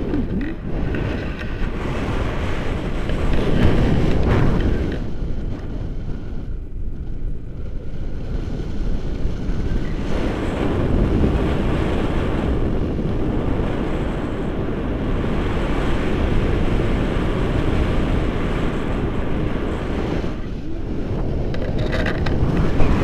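Strong wind rushes and buffets loudly across the microphone.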